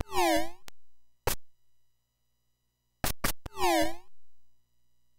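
Electronic video game tones chirp in quick falling sweeps.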